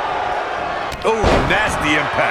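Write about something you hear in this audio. A heavy body slams onto a wrestling mat with a loud thud.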